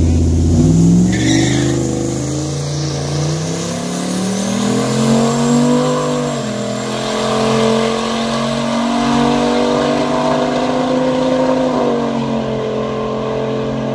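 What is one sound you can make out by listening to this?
Drag racing car engines roar loudly as the cars launch and accelerate away, rising in pitch through the gears.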